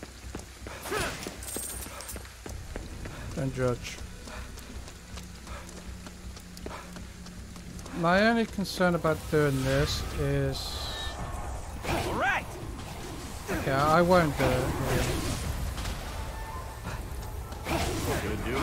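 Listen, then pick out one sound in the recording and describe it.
Magical energy blasts fire in quick bursts.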